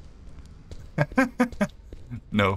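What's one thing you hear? A young man laughs loudly and close to a microphone.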